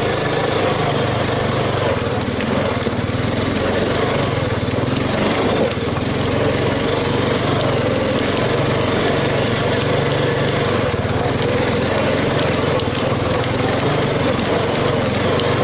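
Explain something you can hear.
An off-road quad bike engine rumbles loudly and steadily up close.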